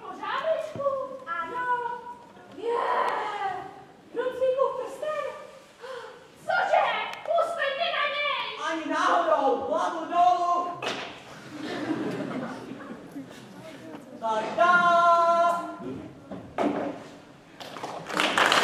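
Young puppeteers speak in animated, playful character voices.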